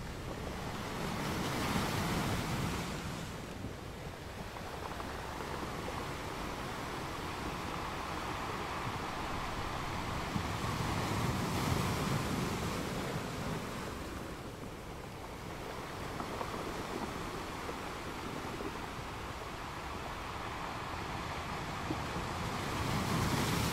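Ocean waves crash and roar against rocks in surges.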